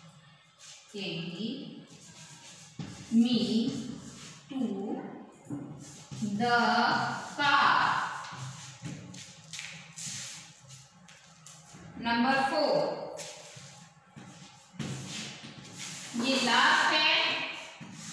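A woman speaks clearly and slowly, close by, as if reading aloud.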